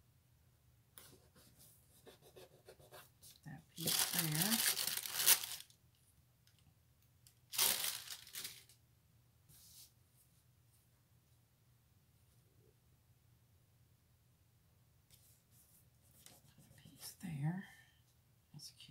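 Paper pages rustle and slide against each other.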